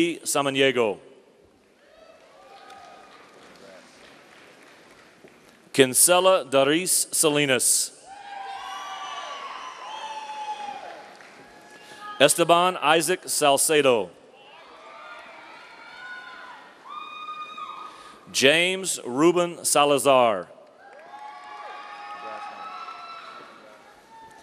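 A crowd cheers and whistles in a large hall.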